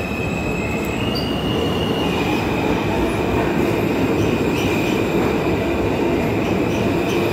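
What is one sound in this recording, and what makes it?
Train wheels screech on the rails.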